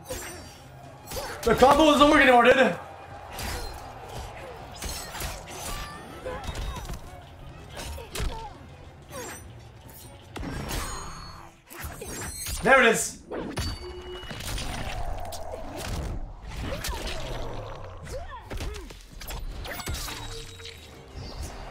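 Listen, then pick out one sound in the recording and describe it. Heavy blows and impacts land in quick succession.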